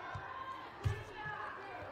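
A volleyball is struck with a sharp slap.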